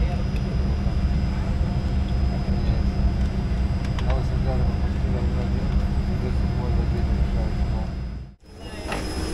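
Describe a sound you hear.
Jet engines hum steadily and low.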